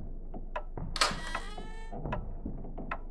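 A door creaks slowly open.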